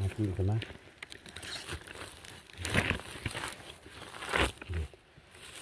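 A knife scrapes and digs into dry soil and pine needles.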